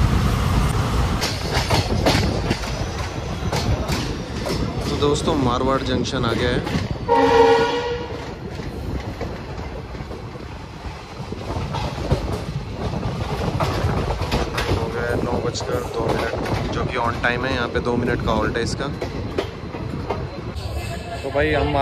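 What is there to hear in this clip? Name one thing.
A train rumbles and clatters along the tracks.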